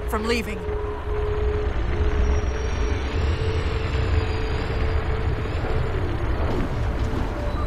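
A spacecraft engine hums with a deep, steady roar.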